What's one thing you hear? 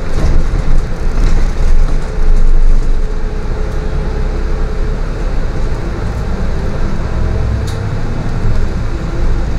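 A bus rattles and creaks as it rolls over the road.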